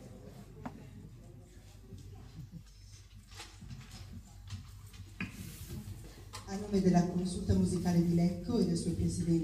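An elderly woman speaks into a microphone over loudspeakers in a large echoing hall.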